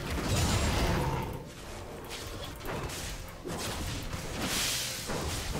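Video game spell effects whoosh and clash in a fight.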